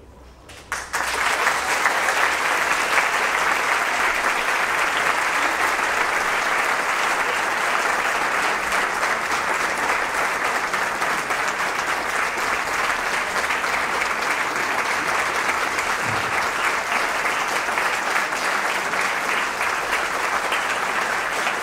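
A large crowd murmurs and chatters in a big hall.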